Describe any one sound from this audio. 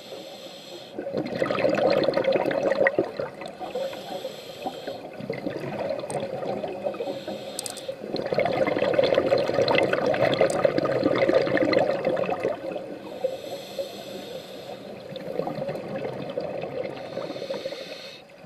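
Scuba regulator bubbles gurgle and rush loudly underwater, in bursts.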